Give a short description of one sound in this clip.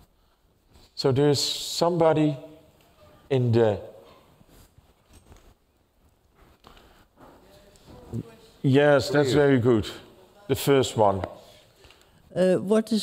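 A man speaks into a microphone in a large hall, pausing between phrases.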